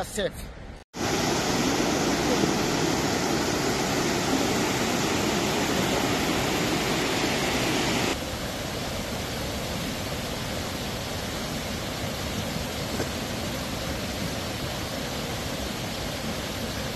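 Muddy floodwater rushes and roars loudly over rocks.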